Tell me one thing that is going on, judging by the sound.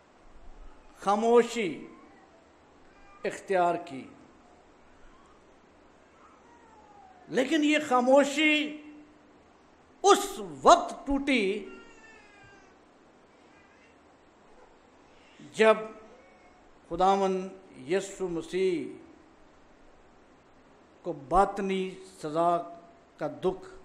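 An older man reads out slowly into a microphone, with long pauses between phrases.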